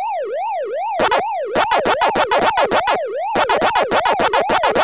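Rapid electronic chomping blips play in quick bursts.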